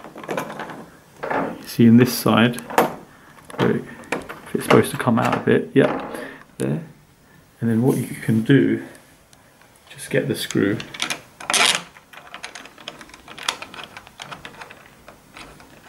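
A key turns and clicks in a door lock.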